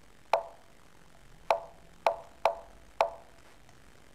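Short wooden clicks sound as chess pieces are moved.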